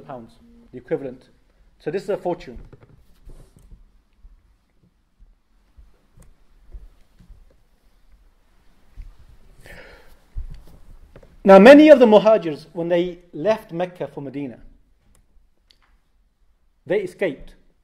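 A young man speaks calmly into a microphone, with pauses.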